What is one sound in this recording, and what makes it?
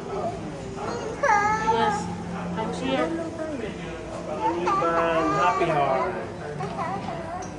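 A toddler girl cries and wails up close.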